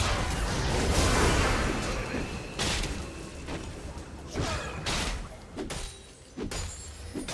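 Magical spell effects burst and crackle in a fierce fight.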